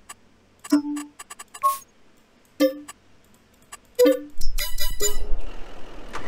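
Short electronic menu beeps chime.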